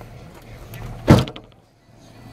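A car's trunk lid slams shut.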